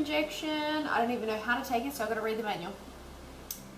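A young woman speaks calmly and expressively close by.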